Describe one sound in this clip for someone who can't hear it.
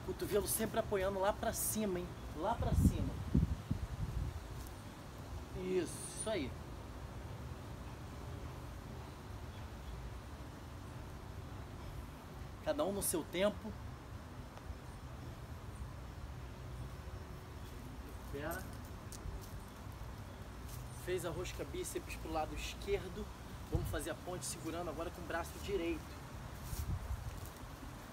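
A man speaks calmly and clearly nearby, in short bursts with pauses.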